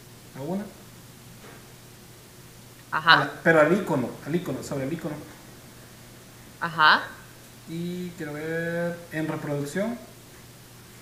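A young woman talks calmly over an online call, in short bursts with pauses.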